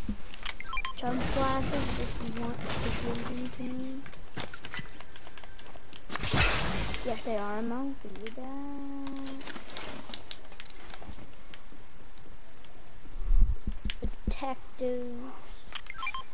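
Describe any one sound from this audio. A chest opens with a ringing, humming chime.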